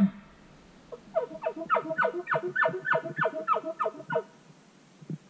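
A hunter blows rhythmic grunts through an elk bugle call.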